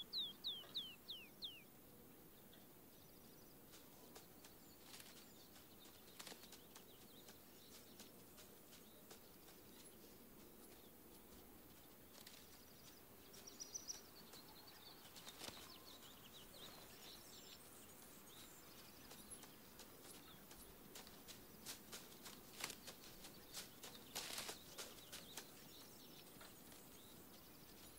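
Footsteps crunch through dry grass and brush.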